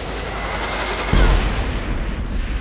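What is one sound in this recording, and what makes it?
A loud explosion bursts with a crackling roar.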